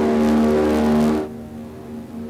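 Propeller engines drone loudly inside an aircraft cockpit.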